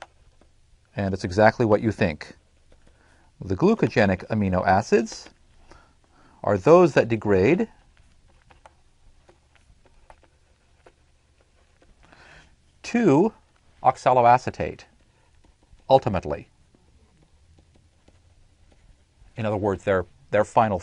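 A man lectures calmly through a microphone, pausing between phrases.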